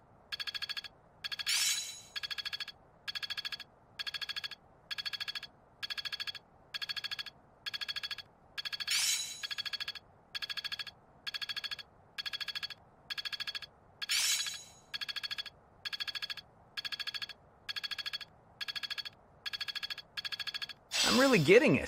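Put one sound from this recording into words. A game menu ticks in quick, evenly repeating bursts.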